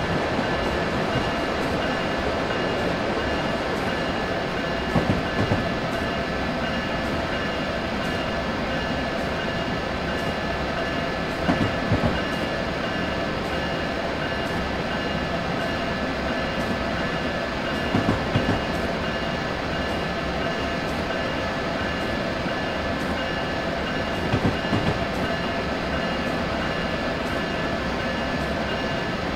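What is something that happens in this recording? An electric train hums steadily as it runs along the track.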